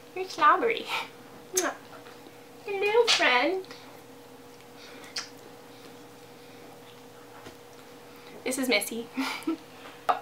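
A young woman speaks playfully and close to a microphone.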